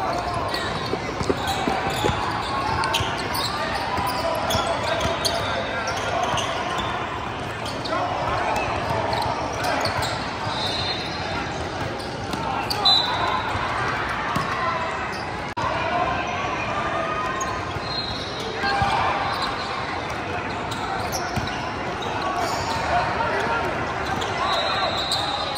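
Young players call out to each other during play.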